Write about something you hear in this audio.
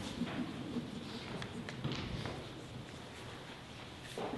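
Pages of a book rustle nearby in an echoing room.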